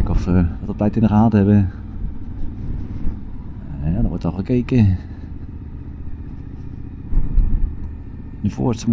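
A motorcycle engine rumbles steadily close by.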